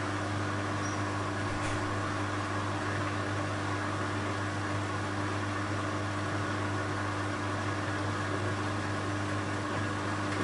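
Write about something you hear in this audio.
A washing machine hums steadily as its drum turns.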